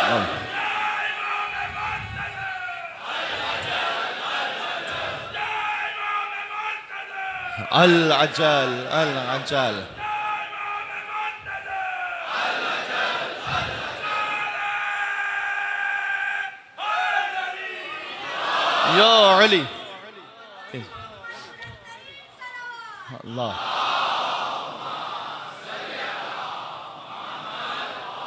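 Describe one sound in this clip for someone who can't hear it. A man chants and speaks with feeling into a microphone over loudspeakers in an echoing hall.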